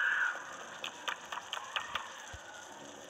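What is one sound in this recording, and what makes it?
Small footsteps tap on wooden boards.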